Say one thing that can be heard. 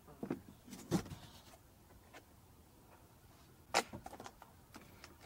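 Something knocks and scrapes close by as it is handled and set down.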